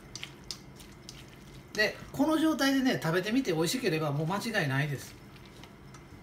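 Chopsticks scrape and tap against a metal bowl while stirring a moist mixture.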